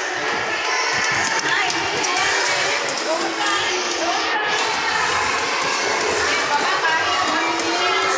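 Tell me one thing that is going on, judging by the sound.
Young children chatter and call out all around in an echoing hall.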